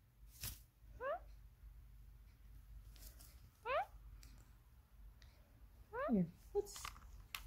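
A parrot makes short whistling chirps.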